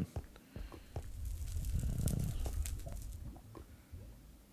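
Lava bubbles and rumbles low.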